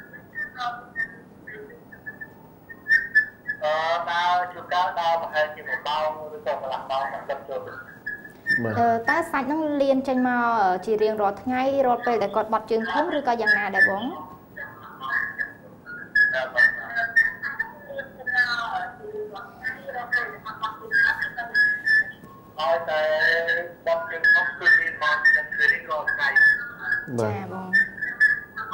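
A man speaks calmly and steadily through a microphone.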